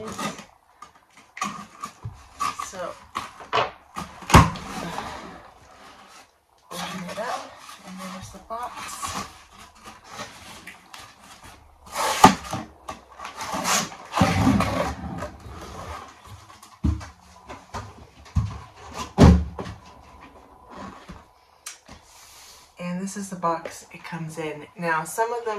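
Cardboard rustles and scrapes as hands handle it.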